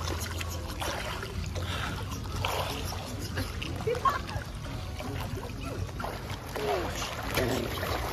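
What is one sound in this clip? Water splashes gently in a pool.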